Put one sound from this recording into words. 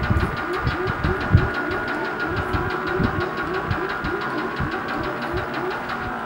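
A retro video game's racing car engine whines steadily.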